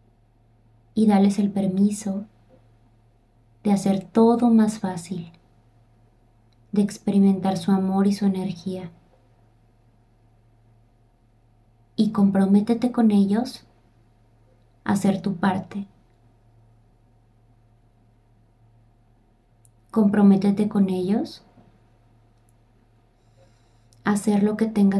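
A young woman speaks softly and slowly into a close microphone, in short phrases with pauses.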